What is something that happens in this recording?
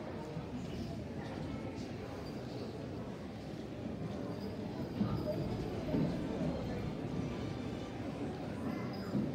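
A choir of children sings.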